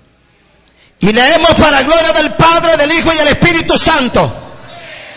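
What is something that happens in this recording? A man speaks loudly and with fervour through a microphone in a room with some echo.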